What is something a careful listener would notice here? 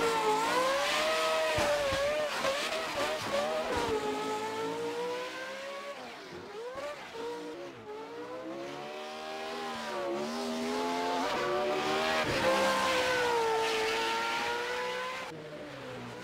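Tyres squeal as a car slides sideways.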